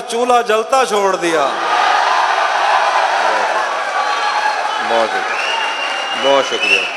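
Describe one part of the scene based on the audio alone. A man recites loudly into a microphone in a large hall.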